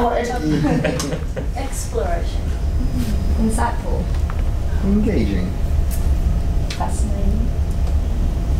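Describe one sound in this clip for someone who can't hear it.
A woman speaks nearby in a relaxed, cheerful voice.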